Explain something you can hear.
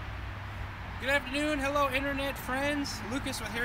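A young man speaks calmly and close by, outdoors.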